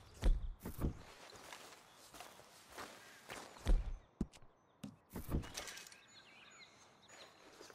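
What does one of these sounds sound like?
Boots crunch on loose gravel and stones.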